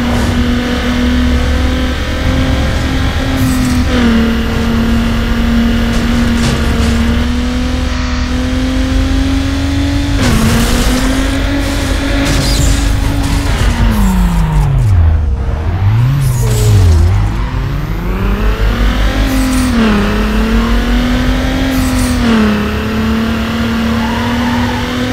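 A car engine roars steadily, its pitch rising and falling with gear shifts.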